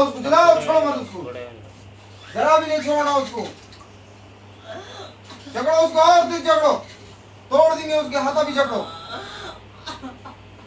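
A woman wails and cries out loudly in long bursts, close by.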